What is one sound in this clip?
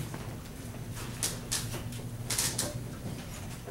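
A page of a paper score rustles as it is turned.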